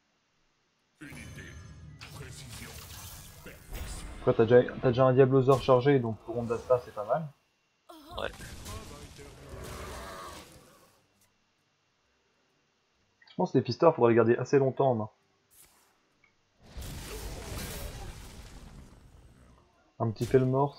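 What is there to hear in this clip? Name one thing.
Game sound effects chime and whoosh.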